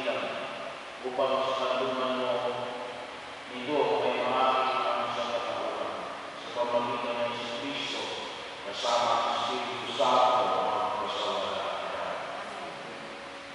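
Voices sing a slow hymn in a large echoing hall.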